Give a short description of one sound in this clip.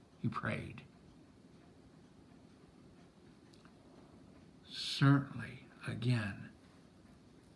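A middle-aged man speaks calmly and close to the microphone, in short bursts.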